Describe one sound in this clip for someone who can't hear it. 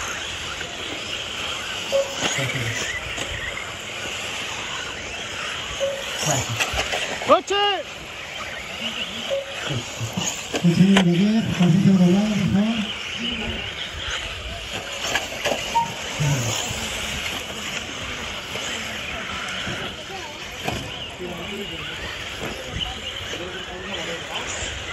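Small tyres crunch and skid on loose dirt.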